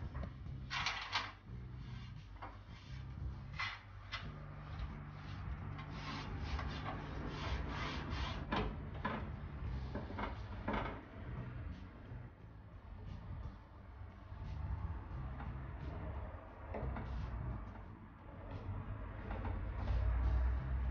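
A cloth rubs and squeaks across glass.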